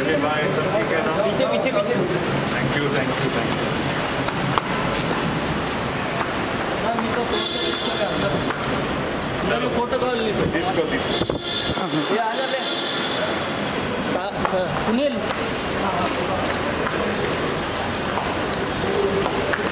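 Several men talk and call out nearby in a bustling crowd.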